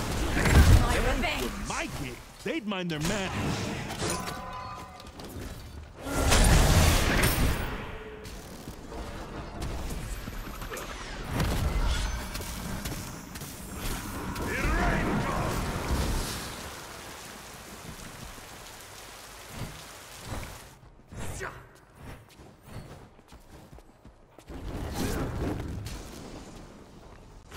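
Game weapons clash and strike in quick hits.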